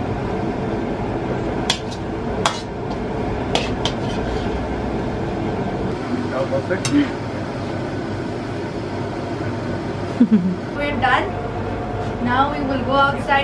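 A kitchen vent hums steadily.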